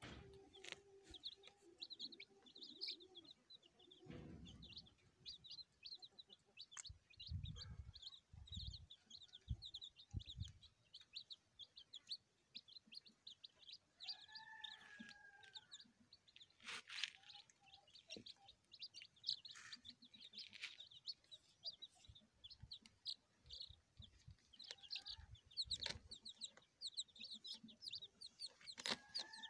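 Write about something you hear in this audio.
Many chicks peep and cheep constantly, close by.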